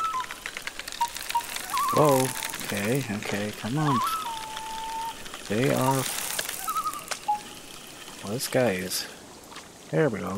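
A fishing reel clicks steadily as line winds in.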